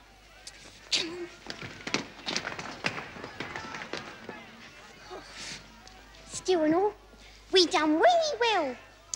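A young woman speaks with animation close by.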